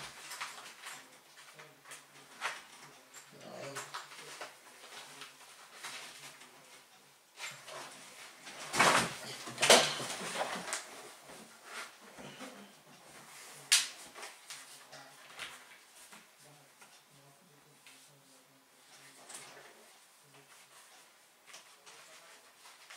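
Fabric rustles and shuffles close by as a person handles clothing.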